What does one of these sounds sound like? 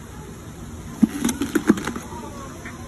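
A hippo crunches a pumpkin in its jaws.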